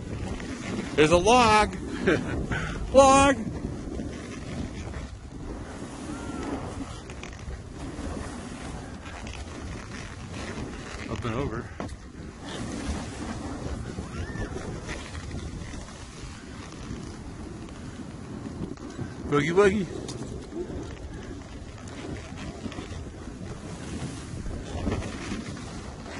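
Wind rushes over the microphone outdoors.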